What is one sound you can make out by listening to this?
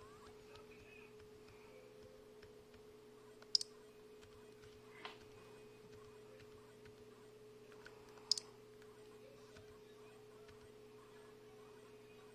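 A thumb clicks the buttons of a small handheld game console.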